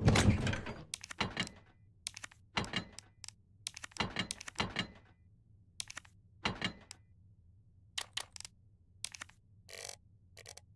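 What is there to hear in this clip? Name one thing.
Menu selections click in short blips.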